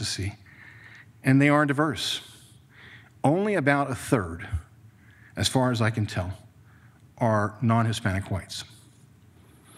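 A middle-aged man speaks with pauses into a microphone.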